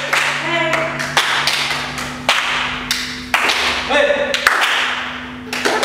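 Several people clap their hands in a large, echoing room.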